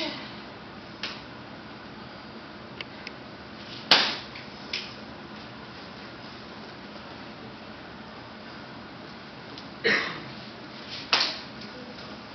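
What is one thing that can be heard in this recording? A karate uniform snaps with quick strikes and kicks.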